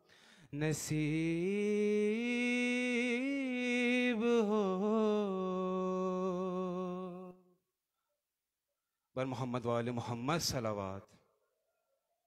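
A young man chants a long, drawn-out melodic recitation through a microphone in an echoing hall.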